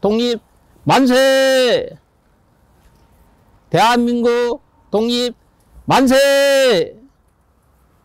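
An elderly man cries out loudly in long, drawn-out shouts.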